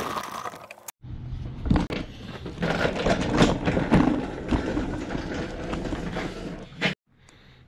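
Mower wheels rattle and bump across a hard floor.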